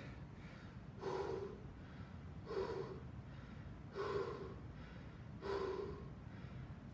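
A man breathes out hard at a steady rhythm.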